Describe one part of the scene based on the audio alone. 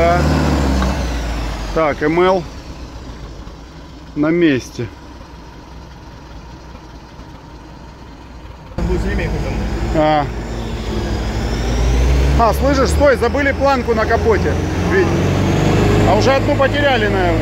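An off-road vehicle's engine rumbles and revs as it drives.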